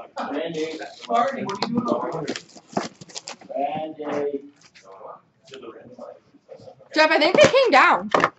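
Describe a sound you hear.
A cardboard box is turned over and handled, its sides scraping and tapping.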